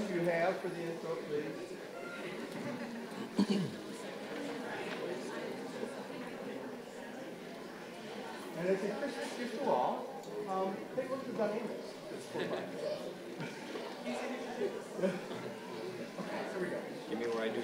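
A brass band plays a lively tune.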